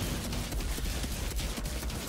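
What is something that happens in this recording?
Gunfire from a video game rattles.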